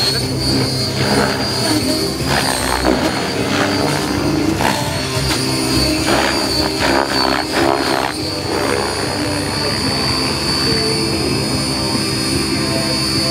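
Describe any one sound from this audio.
A model helicopter's rotor blades whir and chop the air.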